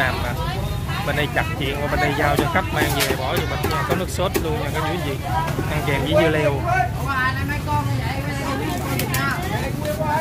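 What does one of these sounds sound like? A woman talks with a customer nearby.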